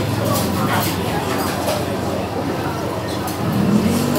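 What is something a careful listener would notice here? A young woman slurps noodles.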